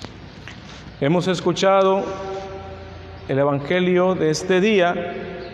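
A man sings or chants in a clear voice in an echoing hall.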